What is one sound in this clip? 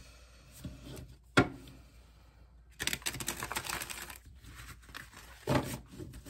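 Cards riffle and shuffle with a papery rustle.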